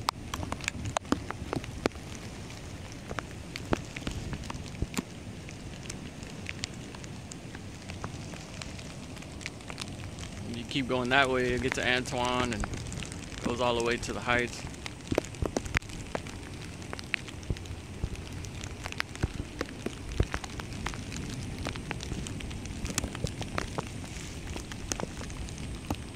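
A swollen river rushes and churns steadily nearby.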